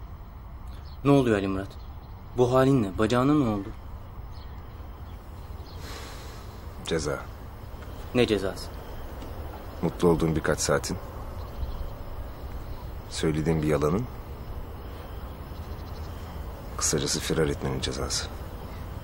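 A man speaks calmly in a low voice nearby.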